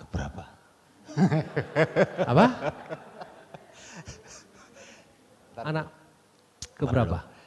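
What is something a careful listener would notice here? A middle-aged man speaks with animation into a microphone, heard through a loudspeaker in a large room.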